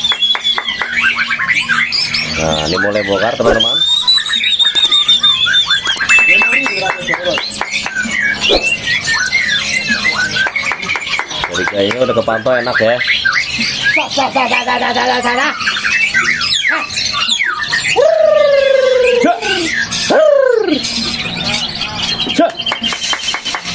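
A songbird sings loudly and continuously nearby with varied whistles, trills and chattering phrases.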